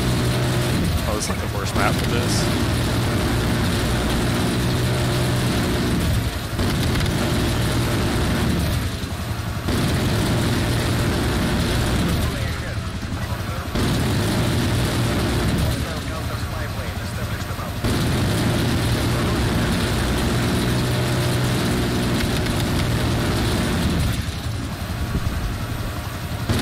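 A helicopter's rotors drone steadily.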